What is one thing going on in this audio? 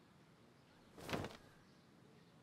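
A coat rustles as it is hung on a hook.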